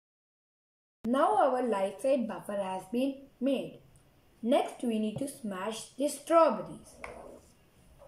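A boy speaks close by, explaining calmly.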